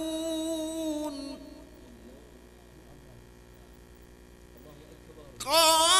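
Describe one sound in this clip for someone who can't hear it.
A man chants a long, drawn-out melodic recitation through a microphone, pausing between phrases.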